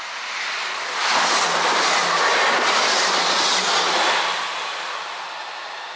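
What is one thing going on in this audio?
A passenger train rushes past close by with a loud roar and rattle of wheels on the rails.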